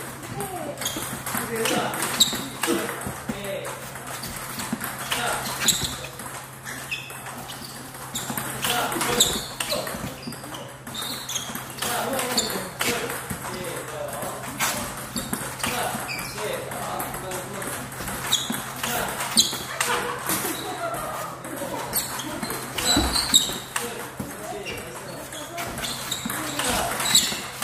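A table tennis ball clicks back and forth off paddles and the table in a quick rally.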